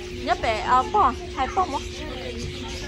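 A young child squeals and calls out excitedly close by.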